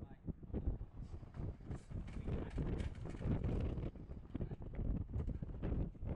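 Sheep hooves clatter on a metal ramp.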